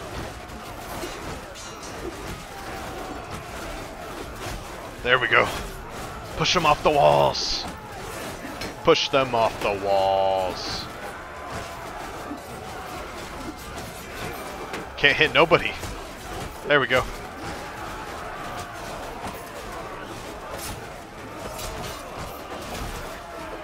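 A crowd of soldiers roars in a battle din.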